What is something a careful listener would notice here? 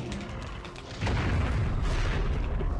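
A creature's body bursts into a rushing cloud of smoke with a low rumble.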